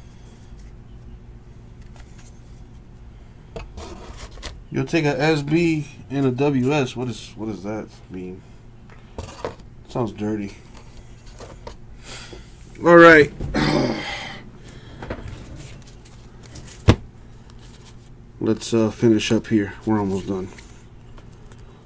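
Cards rustle and slide as they are handled.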